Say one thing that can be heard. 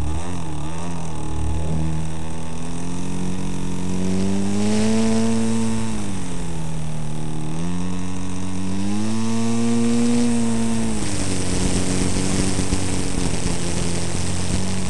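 A small propeller engine drones close by, its pitch rising and falling.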